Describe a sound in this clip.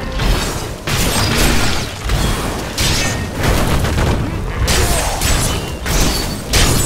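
Weapons strike and slash in a fast fight, with repeated bursts of impact.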